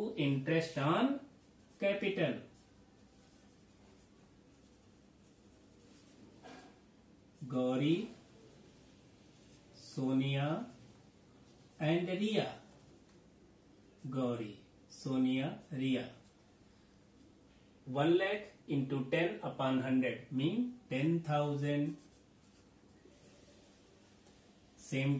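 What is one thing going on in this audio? A man speaks calmly and explains in short bursts, close by.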